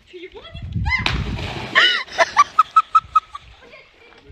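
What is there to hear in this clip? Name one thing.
Water splashes as someone drops into a pool.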